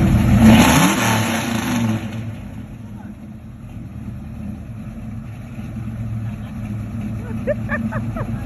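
A 1966 Mustang's engine idles with a deep rumble.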